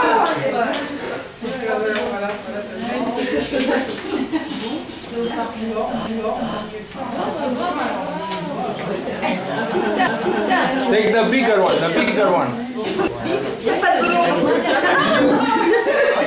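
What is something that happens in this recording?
Several women talk and laugh together, close by, in a lively group.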